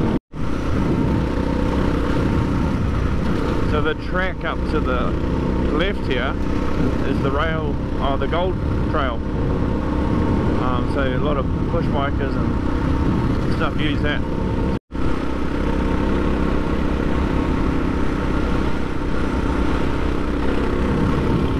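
A motorcycle engine drones steadily up close.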